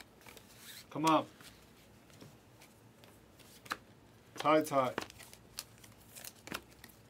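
Trading cards shuffle and flick in a man's hands.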